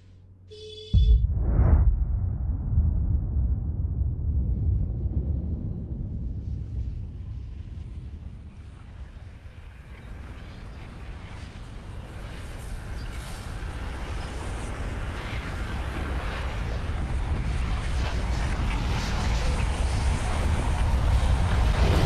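A deep rumbling roar swells and grows louder.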